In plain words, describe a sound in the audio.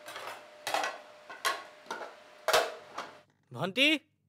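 Ceramic dishes clink and clatter on a table.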